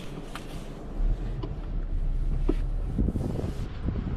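A car engine starts and idles with a low rumble.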